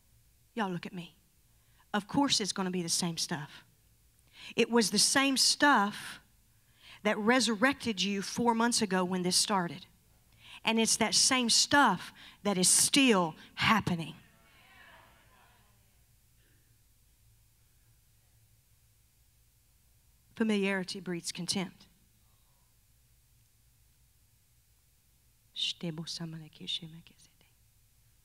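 A woman speaks with animation into a microphone, heard through loudspeakers in a large hall, with long pauses.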